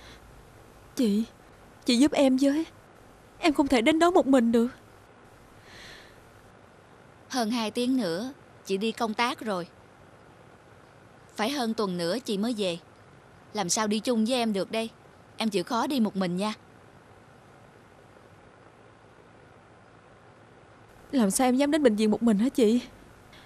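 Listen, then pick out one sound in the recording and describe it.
A woman speaks close by in a tearful, upset voice.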